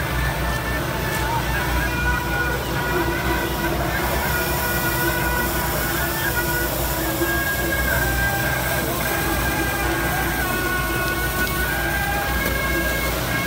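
Firecrackers crackle and bang in a dense, continuous barrage.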